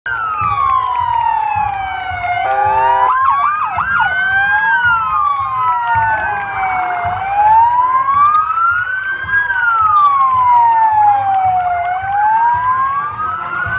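Several police sirens wail up and down close by, overlapping.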